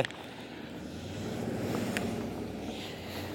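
A car drives past on the road.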